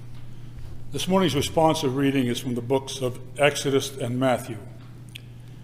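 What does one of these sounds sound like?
An elderly man speaks calmly into a microphone in an echoing room.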